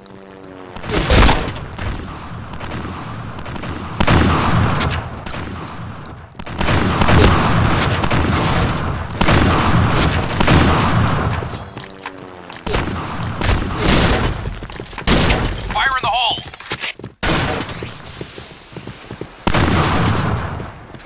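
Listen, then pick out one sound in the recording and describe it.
A shotgun fires in loud, booming blasts.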